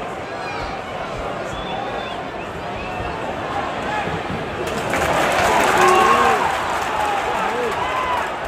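A large stadium crowd murmurs and chatters all around.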